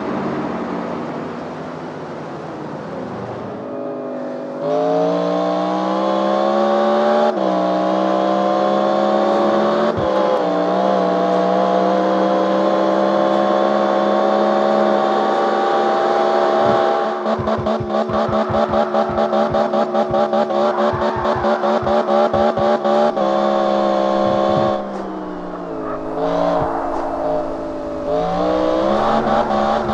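A powerful car engine roars and revs as it speeds up through the gears.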